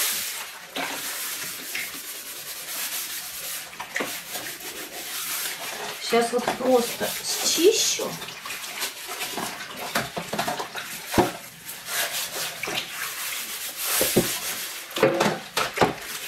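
A sponge scrubs a metal baking tray.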